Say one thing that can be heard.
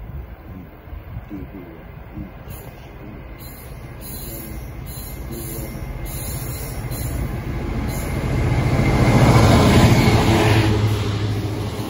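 A diesel locomotive approaches, its engine rumbling louder and peaking as it passes close by.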